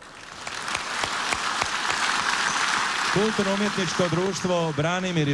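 A large crowd applauds in a big echoing hall.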